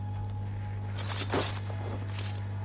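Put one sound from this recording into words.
A blade strikes a body with a sudden slash.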